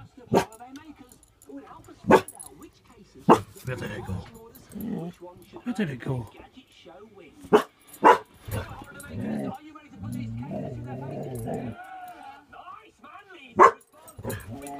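A dog barks loudly in sharp bursts, close by.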